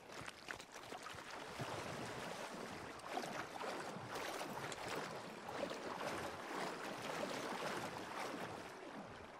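Water splashes and sloshes as someone wades through it.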